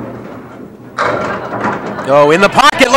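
Bowling pins crash and clatter as a ball hits them.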